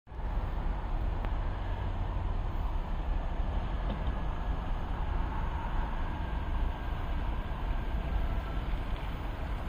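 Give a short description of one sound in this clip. A train rumbles low in the distance as it slowly approaches.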